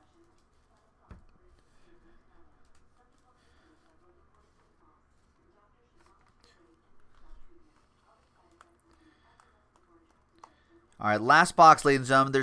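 Trading cards shuffle and slap together in hands.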